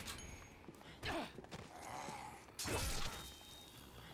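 Heavy blows thud against bodies in a fight.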